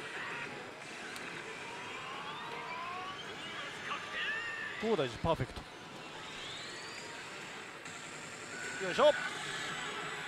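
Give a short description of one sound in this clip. A slot machine plays electronic sound effects and jingles.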